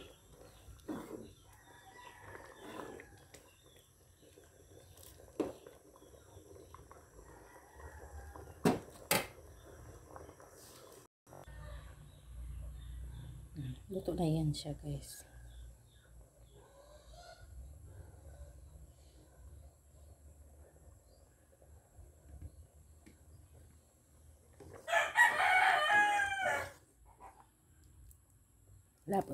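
Thick sauce bubbles and simmers in a pot.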